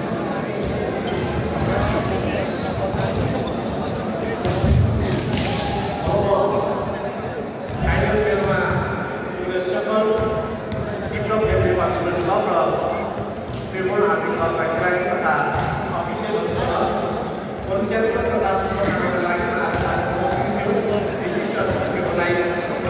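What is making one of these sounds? A large crowd cheers and chants loudly in an echoing indoor hall.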